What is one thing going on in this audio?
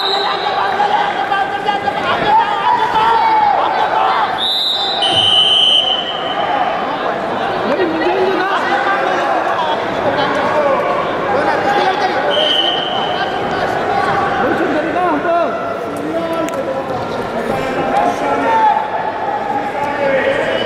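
A crowd of spectators chatters and cheers in a large echoing hall.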